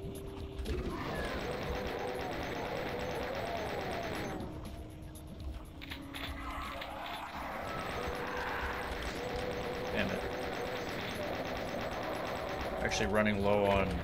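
Monsters growl and snarl.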